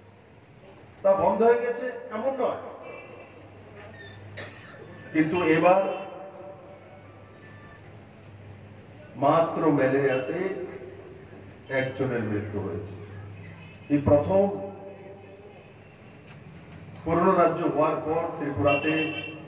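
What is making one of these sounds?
A man speaks forcefully into a microphone over a loudspeaker, in bursts with pauses.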